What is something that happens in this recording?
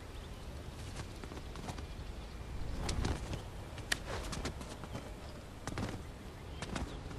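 Footsteps scuff and thud on stone as a figure climbs.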